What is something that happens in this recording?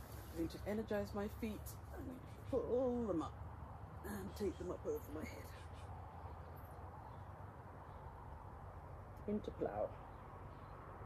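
An elderly woman speaks calmly and slowly.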